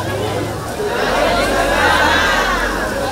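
A group of women wails loudly.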